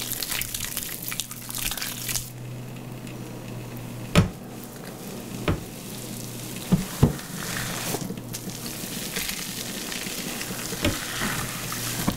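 Fingers scrub and squish through wet, soapy hair.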